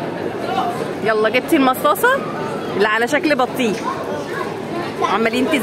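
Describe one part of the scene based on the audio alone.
A young girl speaks excitedly up close.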